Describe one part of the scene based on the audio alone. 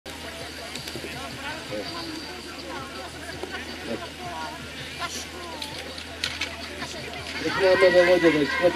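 A crowd of men and women chatter outdoors at a distance.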